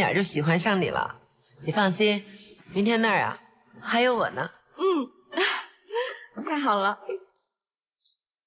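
A young woman speaks warmly and cheerfully, close by.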